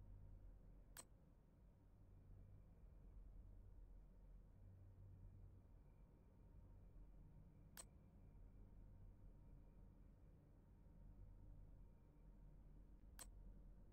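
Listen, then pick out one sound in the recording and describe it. Short, sharp interface clicks sound now and then.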